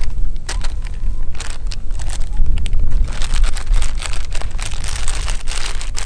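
A paper packet crinkles and rustles.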